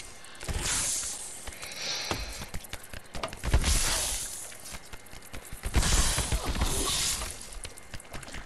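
Weapons thud and clash in a close fight.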